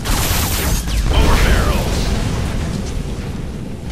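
A heavy explosion booms and rumbles away.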